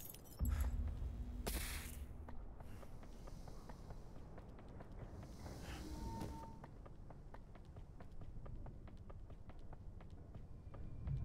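Footsteps tread steadily over a hard floor.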